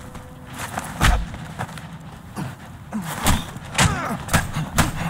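Fists thud in a brawl.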